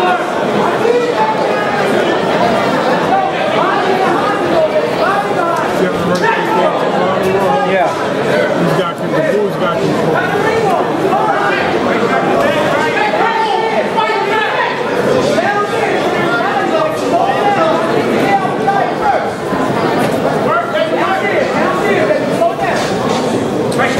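A crowd talks and shouts loudly in a large hall.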